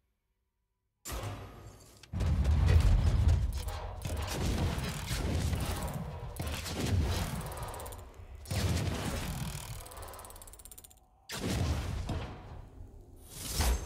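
A heavy chest rumbles and clanks as it transforms.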